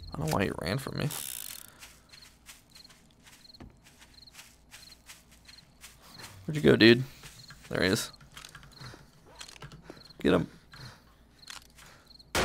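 Footsteps tread steadily over grass.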